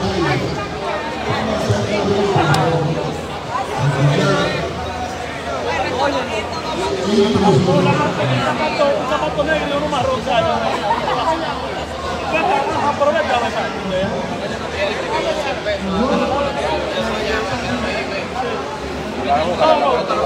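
A crowd of men and women chatter indoors.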